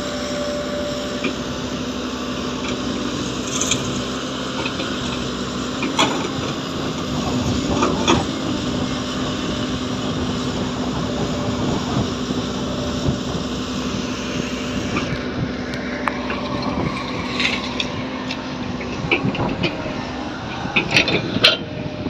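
An excavator bucket clanks and scrapes as it digs.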